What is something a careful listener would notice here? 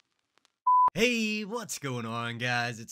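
A young man speaks cheerfully into a close microphone.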